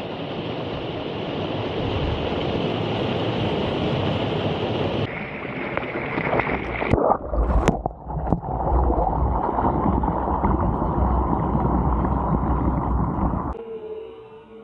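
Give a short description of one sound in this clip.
Water rushes and splashes loudly down a waterfall.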